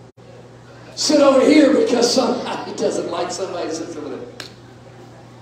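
A middle-aged man speaks with animation into a microphone over loudspeakers in a large echoing hall.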